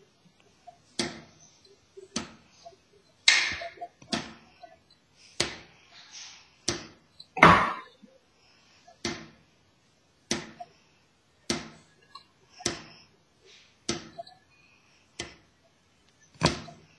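Drumsticks strike a snare drum in single, evenly spaced hits.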